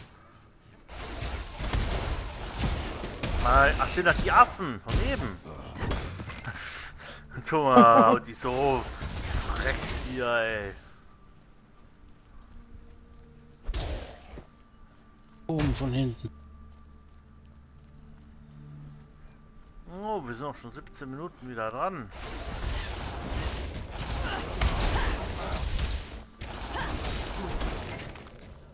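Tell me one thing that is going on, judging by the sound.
Electric spell effects crackle and zap in a video game.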